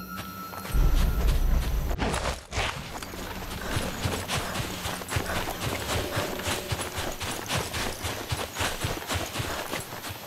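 Footsteps crunch quickly on dirt and gravel.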